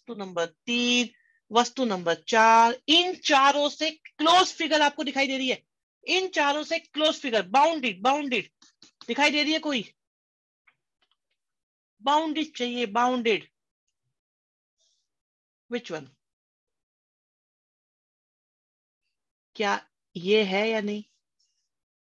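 A man explains calmly, close to a microphone, in bursts with pauses.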